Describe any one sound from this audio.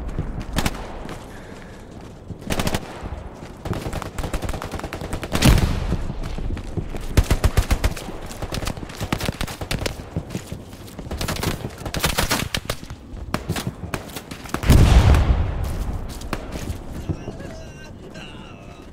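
Footsteps crunch steadily over dirt and wooden boards.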